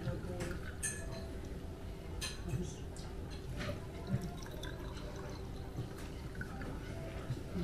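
Wine pours and gurgles into a glass.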